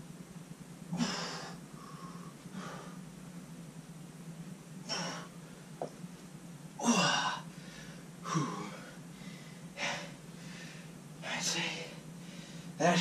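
A man breathes heavily and exhales while stretching, close by.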